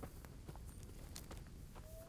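A campfire crackles softly in the distance.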